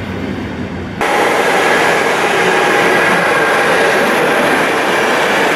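An electric train rushes past at speed with a loud roar.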